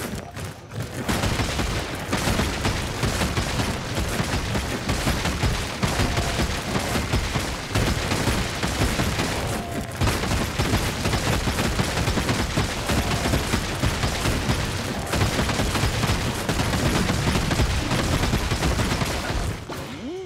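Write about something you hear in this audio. Game music plays with a driving beat.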